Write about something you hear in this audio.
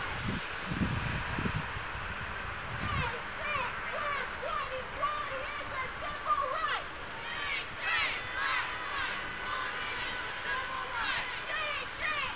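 A crowd of protesters chants and shouts in the distance, outdoors.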